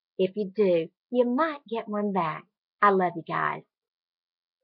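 A middle-aged woman speaks warmly and with animation over an online call.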